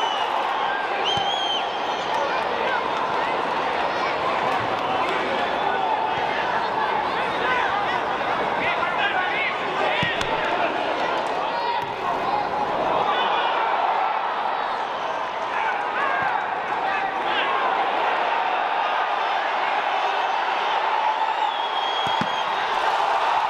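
Whistles from the crowd shrill now and then.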